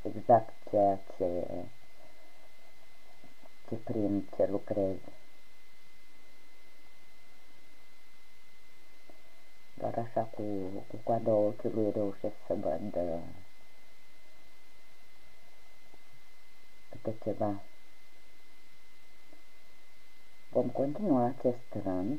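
A crochet hook quietly pulls yarn through stitches.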